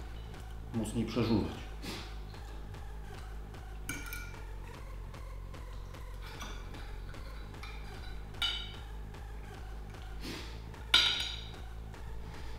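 A fork clinks and scrapes against a plate.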